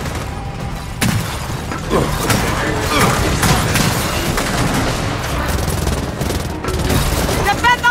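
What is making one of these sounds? Gunfire cracks in quick bursts.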